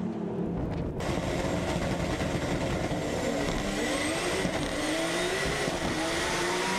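A race car engine roars from inside the car, rising as it speeds up.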